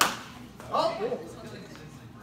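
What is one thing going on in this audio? Practice swords clack together.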